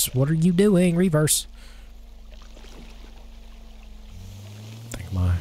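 A boat engine idles with a low hum.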